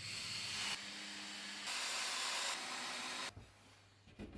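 A cordless drill-driver whirs, driving a screw into wood.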